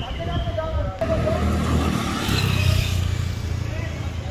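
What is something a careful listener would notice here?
A motor scooter engine hums as it rides past close by.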